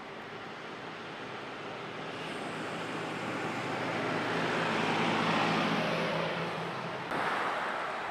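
A bus drives past with a rising and fading engine rumble.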